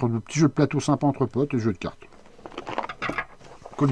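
A cardboard box is turned over on a wooden table.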